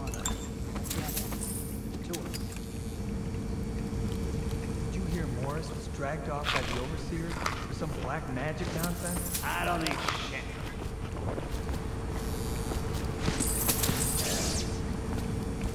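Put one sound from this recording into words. Coins clink as they are picked up.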